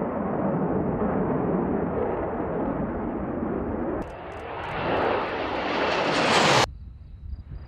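Jet engines roar loudly and rise in pitch as jets pass close by.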